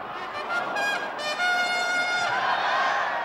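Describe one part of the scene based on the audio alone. A horn toots from the crowd.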